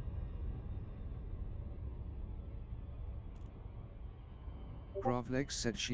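A spacecraft engine hums with a low, steady rumble.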